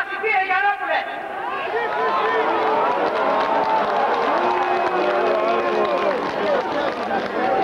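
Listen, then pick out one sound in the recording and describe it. A large crowd cheers and chants together outdoors.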